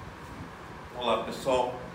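A middle-aged man speaks thoughtfully, close by.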